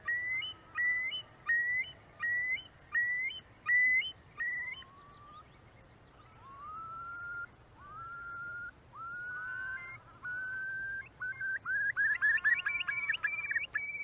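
A curlew calls again and again with rising, bubbling whistles.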